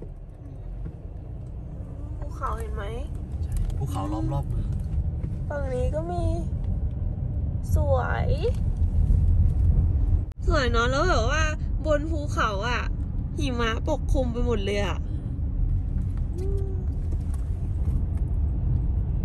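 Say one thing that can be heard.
A car rumbles steadily as it drives along the road.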